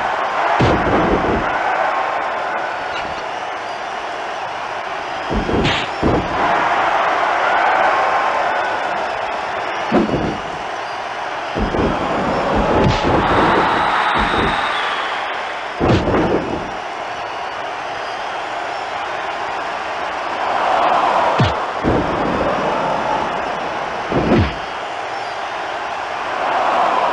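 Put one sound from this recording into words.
A crowd roars and cheers steadily.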